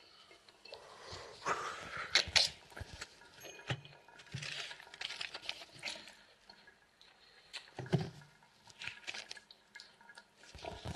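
Bedsheets rustle as a man shifts in bed.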